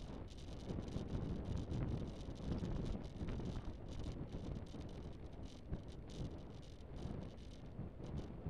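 Wind rushes loudly past an open vehicle moving at speed.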